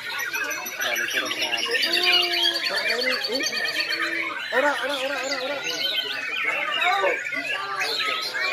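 Many caged white-rumped shamas sing at once outdoors, with rich, varied phrases overlapping.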